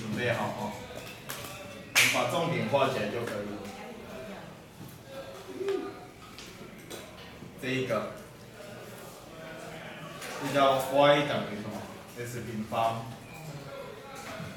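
A man lectures calmly, close by in a room.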